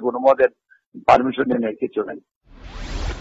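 A man speaks calmly over a telephone line.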